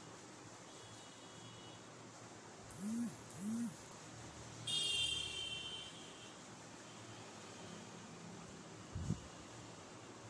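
A cloth wipes and squeaks across a whiteboard.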